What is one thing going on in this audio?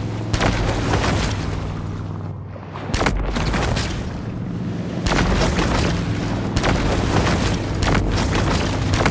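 Electricity crackles and zaps in sharp bursts.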